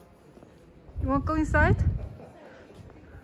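A young woman asks a question close by.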